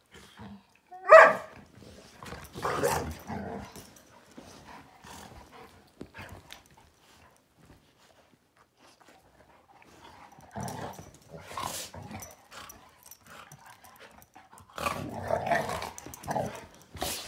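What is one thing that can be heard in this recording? Dogs growl and snarl playfully while wrestling.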